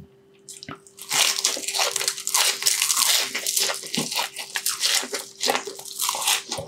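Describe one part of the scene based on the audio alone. Fried food crunches loudly as a man bites and chews close to a microphone.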